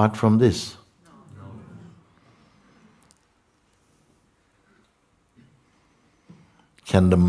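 An elderly man speaks calmly, with long pauses.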